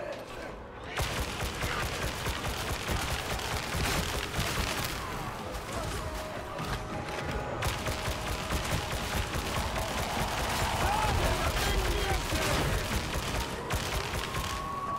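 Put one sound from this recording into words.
Rapid gunfire rattles and bursts in a video game.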